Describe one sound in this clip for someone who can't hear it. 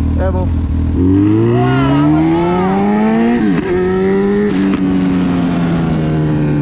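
A motorcycle engine revs up and accelerates, rising in pitch through the gears.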